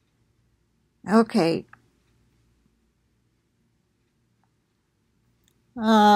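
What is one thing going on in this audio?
An elderly woman speaks calmly and close up, with pauses.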